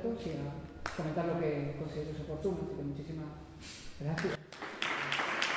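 A man speaks calmly to an audience in a large echoing room.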